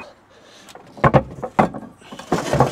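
Heavy rubber mats thump and slap down onto a metal truck bed.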